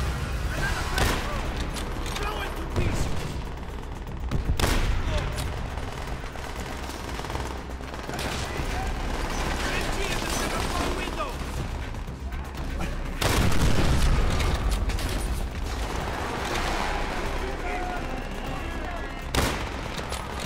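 Single gunshots crack loudly every few seconds.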